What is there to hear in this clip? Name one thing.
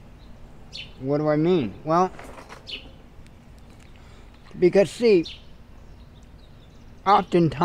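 A middle-aged man speaks calmly and close to a microphone, outdoors, in short phrases with pauses.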